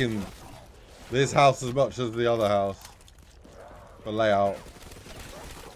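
Gunfire rattles from a video game.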